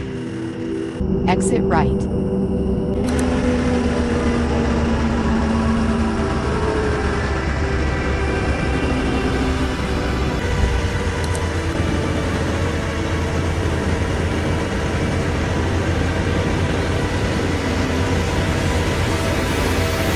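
A bus engine hums with a low, steady rumble.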